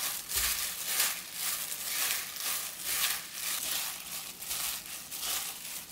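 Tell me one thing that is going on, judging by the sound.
Lettuce leaves rustle and squeak as they are tossed in a wooden bowl.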